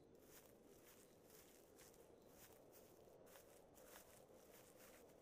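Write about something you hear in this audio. Footsteps rustle through grass at a steady walking pace.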